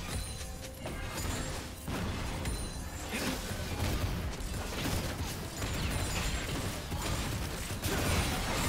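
Game spell effects whoosh, crackle and clash in a busy fight.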